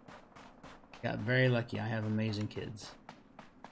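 A young man speaks briefly with animation, close to a microphone.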